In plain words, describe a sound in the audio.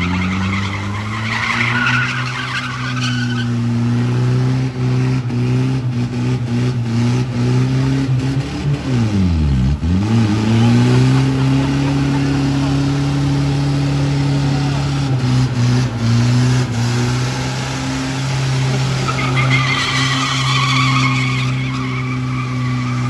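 Tyres screech and squeal on the track.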